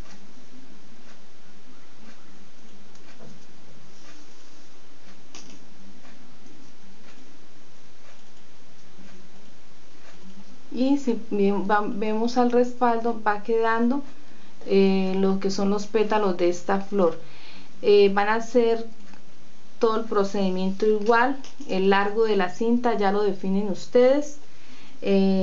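Ribbon rustles softly as hands fold and sew it.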